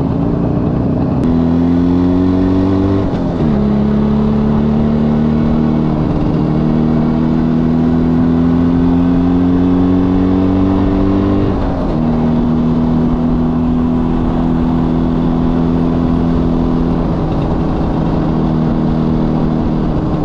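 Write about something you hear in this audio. A small motorcycle engine buzzes close by, its pitch rising as it speeds up and dropping with each gear change.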